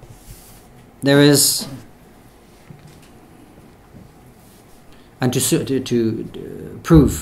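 A man speaks calmly into a microphone, with long pauses.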